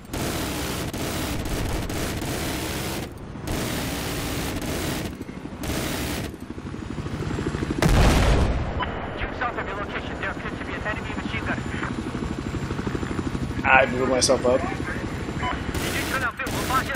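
A helicopter's rotor thumps steadily.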